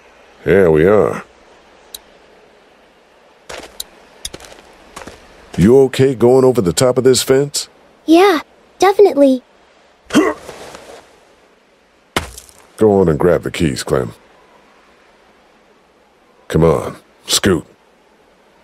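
A man speaks calmly and quietly up close.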